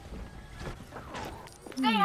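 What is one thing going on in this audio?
A sci-fi beam weapon hums as it fires.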